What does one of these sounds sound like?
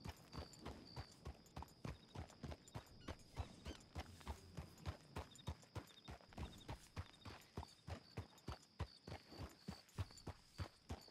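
Horse hooves clop steadily on a dirt path.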